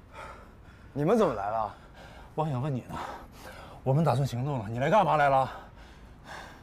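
A man pleads in a strained voice.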